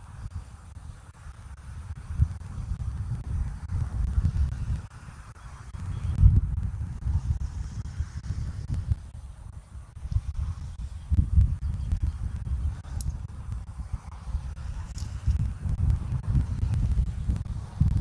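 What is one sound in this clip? Twigs rustle as a large bird shifts in its nest.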